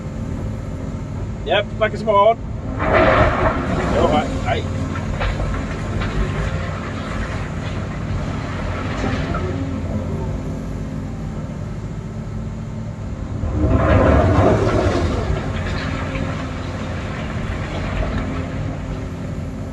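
An excavator engine rumbles steadily from inside the cab.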